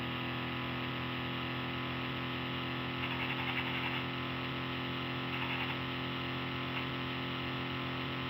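A racing game's car engine drones steadily.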